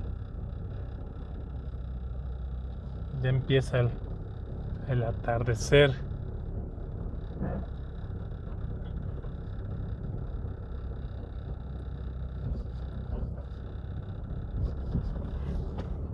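A car drives slowly along a paved street, heard from inside the car.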